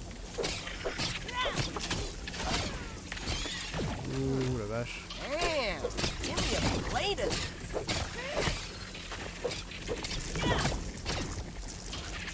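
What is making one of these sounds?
Giant insects screech and hiss.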